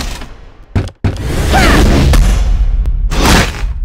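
A magical blast whooshes and crackles.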